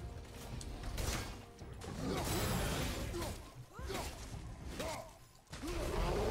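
Heavy blows thud as a warrior fights a creature.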